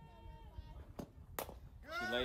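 A bat cracks sharply against a softball.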